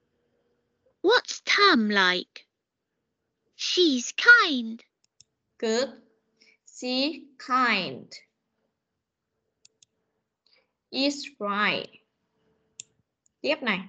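A woman speaks calmly through an online call, in short phrases.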